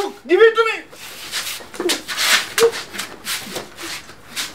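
Two men scuffle and shove against a wall.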